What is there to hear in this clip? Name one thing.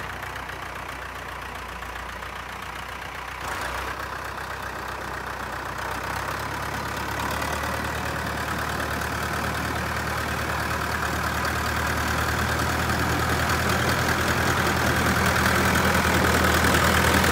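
A tractor engine rumbles, growing louder as the tractor approaches.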